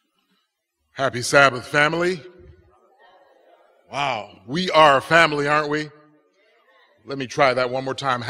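A man speaks with animation into a microphone, his voice echoing in a large hall.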